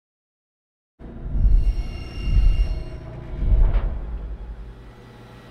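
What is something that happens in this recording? An elevator rumbles as it moves and stops.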